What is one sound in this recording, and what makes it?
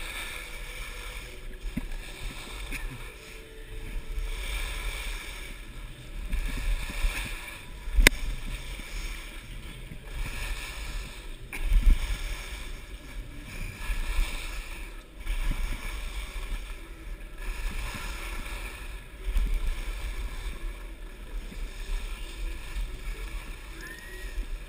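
Skis carve and scrape across hard snow in swooping turns.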